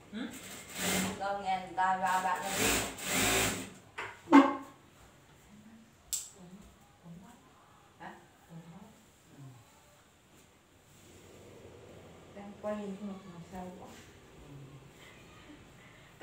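A sewing machine whirs and stitches.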